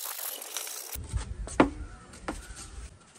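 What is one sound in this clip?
A foam slab knocks onto a table.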